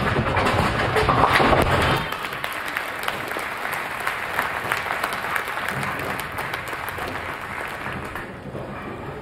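A large crowd cheers and applauds, loud at first and then fading.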